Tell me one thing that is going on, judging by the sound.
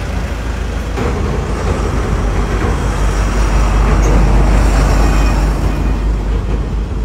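A vehicle passes by on a nearby road, growing louder and then fading.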